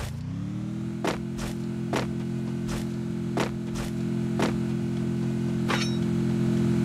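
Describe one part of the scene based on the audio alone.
Quick footsteps thud on grass at a running pace.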